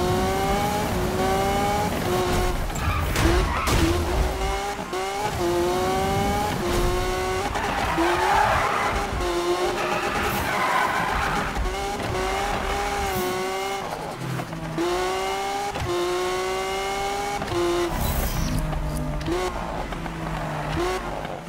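A sports car engine roars, climbing in pitch and dropping again with each gear change.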